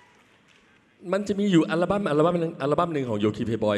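A man speaks with animation into a microphone over a loudspeaker.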